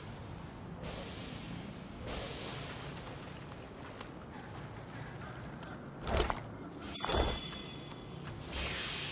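Electric sparks crackle and hiss nearby.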